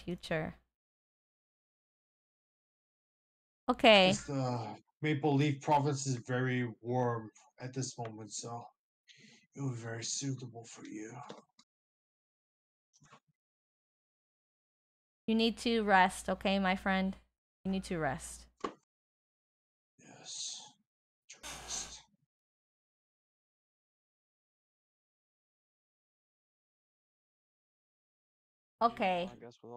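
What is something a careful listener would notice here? A young woman talks with animation into a close microphone, in bursts with pauses.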